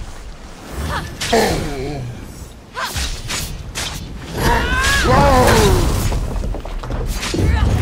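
A giant creature roars loudly.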